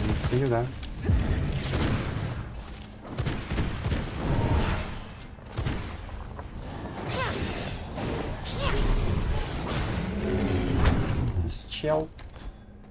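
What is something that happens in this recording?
Magic blasts boom and explode.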